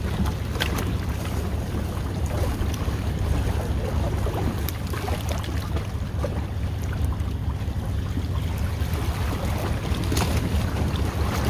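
Wind rumbles steadily across the microphone outdoors.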